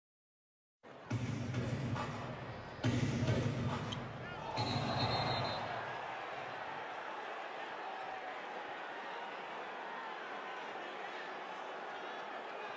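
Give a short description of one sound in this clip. A crowd murmurs and calls out in a large arena.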